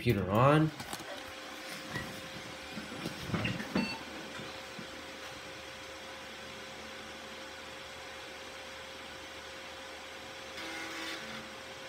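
A computer fan hums steadily.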